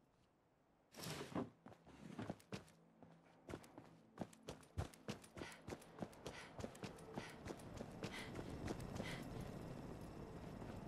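Footsteps crunch and tap on hard ground at a steady walking pace.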